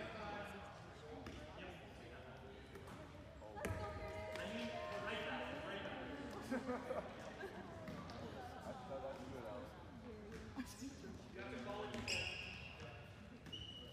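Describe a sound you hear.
Players shout to each other across a large echoing gym.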